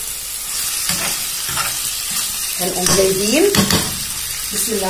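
A spoon scrapes and clinks against a frying pan.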